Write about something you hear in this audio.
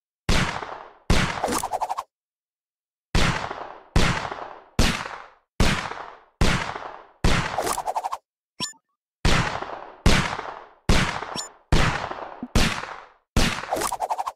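Gunshots fire in a steady rhythm, each with a ringing tail.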